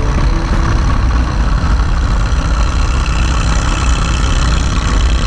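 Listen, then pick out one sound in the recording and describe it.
A second motorcycle engine rumbles close alongside.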